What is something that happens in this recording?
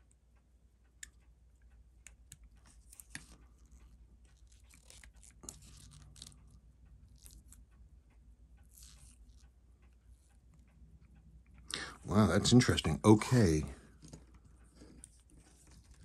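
Small metal parts click and tap softly.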